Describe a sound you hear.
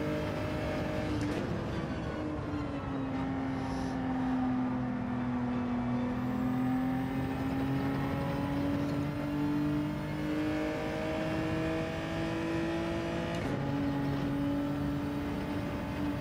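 A racing car engine drones and rises and falls in pitch as the car speeds up and slows down.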